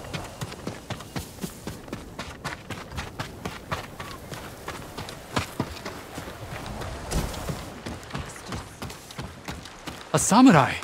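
Quick footsteps run over ground.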